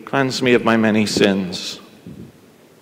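A man chants in a singing voice in a reverberant room.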